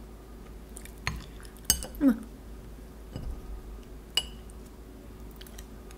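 A knife scrapes over a plate.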